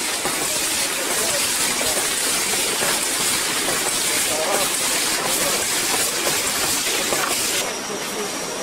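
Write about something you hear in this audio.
Water trickles steadily nearby.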